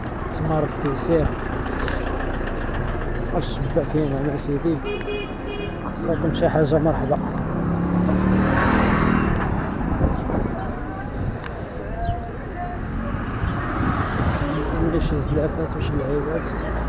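A crowd chatters in a busy outdoor street market.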